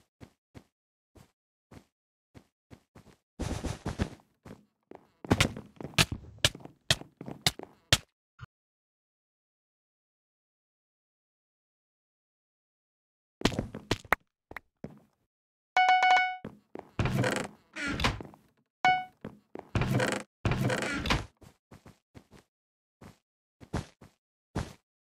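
Blocks are placed with soft, quick clicks.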